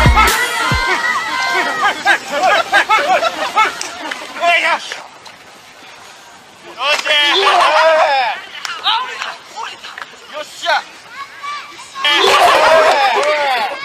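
Young men shout and laugh excitedly nearby.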